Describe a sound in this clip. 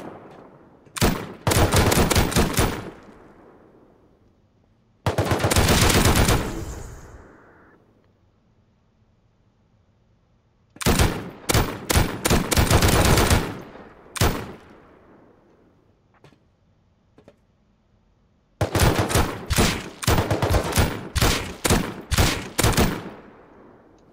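A machine gun fires in rapid bursts that echo down a tunnel.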